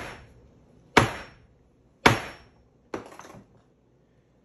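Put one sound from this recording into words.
A hammer taps sharply on leather.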